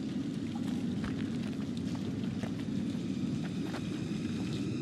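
Footsteps crunch on a forest floor.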